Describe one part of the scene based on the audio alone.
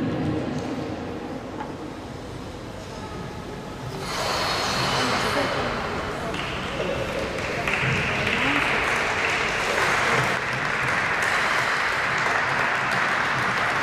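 Skate blades glide and scrape across ice.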